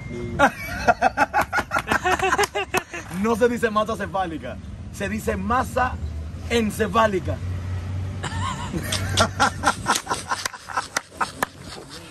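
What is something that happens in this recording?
A man talks animatedly up close outdoors.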